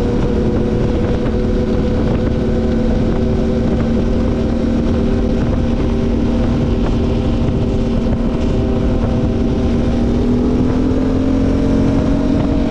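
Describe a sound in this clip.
A quad bike engine hums steadily at speed and slowly rises in pitch near the end.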